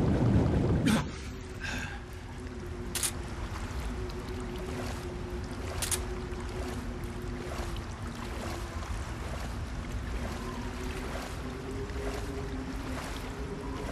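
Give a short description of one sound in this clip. Water splashes and sloshes as a man wades through it.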